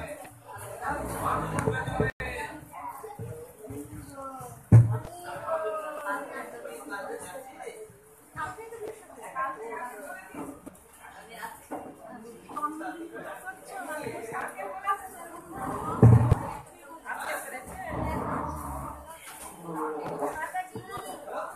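A crowd of children and adults chatters and shouts nearby.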